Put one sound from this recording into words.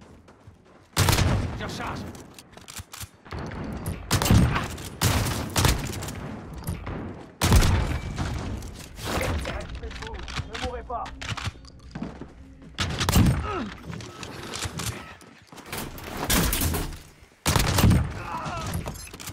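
Gunshots fire in short, loud bursts.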